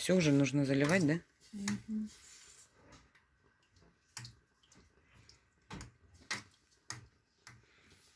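Water sloshes in a pot as it is stirred.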